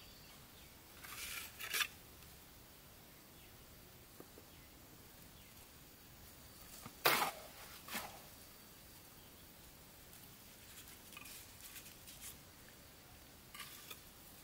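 Bricks clink and scrape as they are set in place.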